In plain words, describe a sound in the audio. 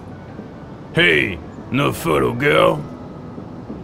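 A man shouts angrily nearby.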